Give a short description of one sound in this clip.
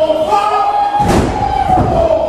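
A wrestler slams down hard onto the ring canvas with a loud thud.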